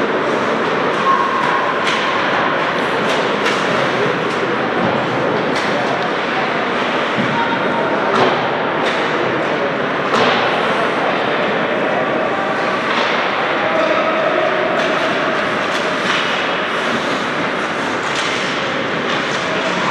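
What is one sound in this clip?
Hockey sticks clack sharply against pucks.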